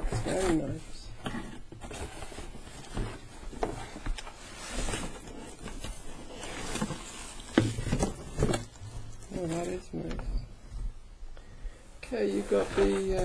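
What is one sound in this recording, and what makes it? Cardboard scrapes and thumps as a box is handled and opened.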